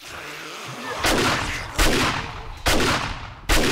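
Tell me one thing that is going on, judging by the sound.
A rifle fires loud shots in quick bursts, echoing in a hard stairwell.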